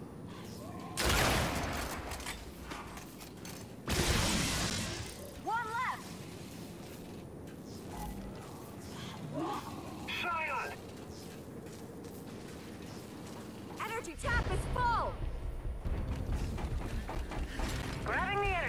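Gunfire bursts loudly in a video game.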